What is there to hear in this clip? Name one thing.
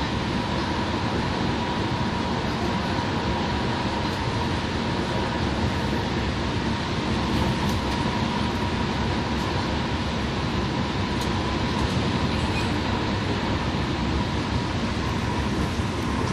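A bus engine drones steadily from inside the cabin.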